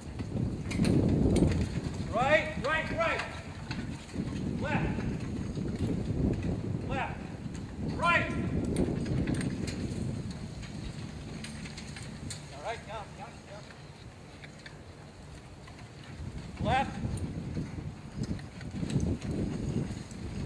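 Carriage wheels rumble and rattle over the ground.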